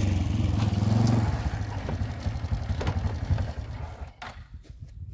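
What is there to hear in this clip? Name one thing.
A motorbike engine runs and revs close by.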